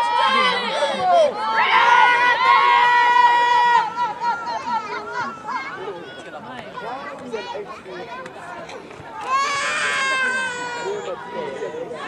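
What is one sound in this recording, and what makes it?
Spectators call out and cheer from close by.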